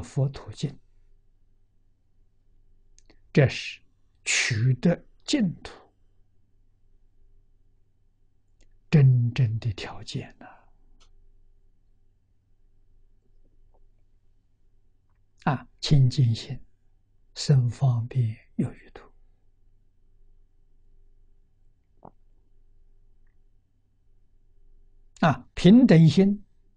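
An elderly man speaks calmly into a close microphone, with long pauses.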